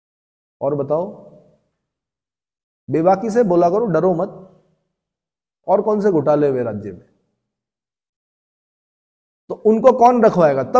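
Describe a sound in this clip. A man speaks calmly and clearly into a nearby microphone, in short phrases with pauses.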